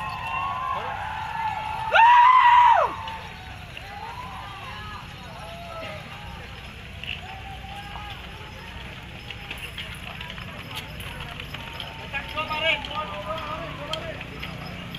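A crowd of men chant and shout outdoors.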